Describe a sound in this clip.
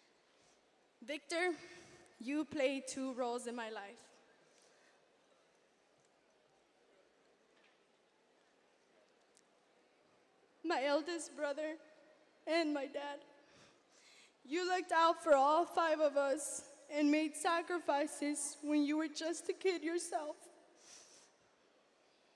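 A young woman speaks into a microphone over loudspeakers in a large echoing hall, pausing between phrases.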